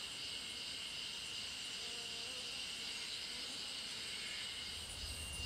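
Cloth flags flutter and rustle softly in a light breeze outdoors.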